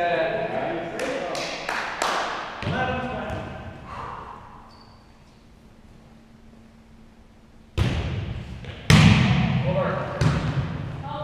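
A volleyball is struck with sharp smacks that echo through the hall.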